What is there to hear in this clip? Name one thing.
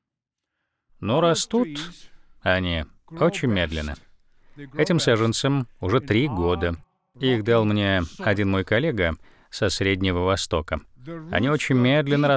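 An older man speaks with animation into a microphone in a large hall.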